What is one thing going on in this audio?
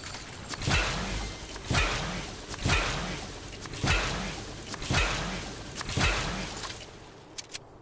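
Electric energy bursts crackle and boom about once a second.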